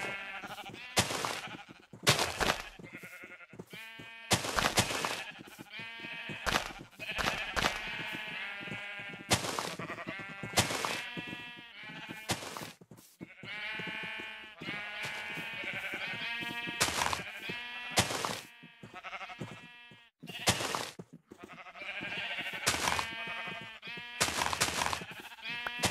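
Blocks thud as they are placed on grass.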